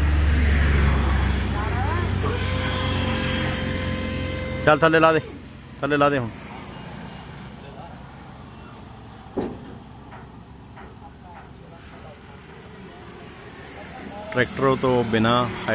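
A hand pump on a hydraulic jack creaks as it is worked.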